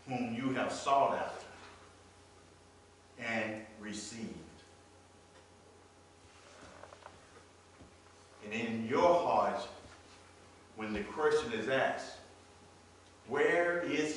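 A man speaks with animation in a large echoing hall, pausing between phrases.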